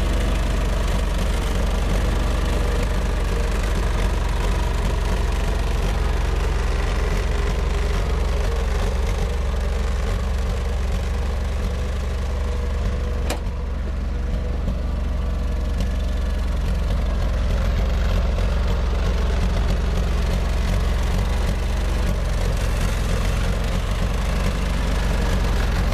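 Tyres crunch over packed snow.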